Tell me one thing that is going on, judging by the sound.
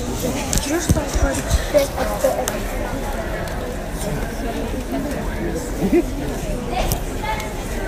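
People in the crowd whoop and shout nearby.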